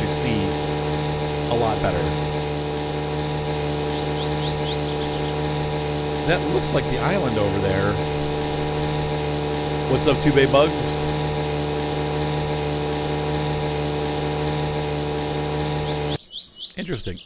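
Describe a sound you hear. A small outboard motor hums steadily.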